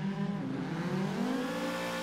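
Tyres screech as a car drifts through a corner.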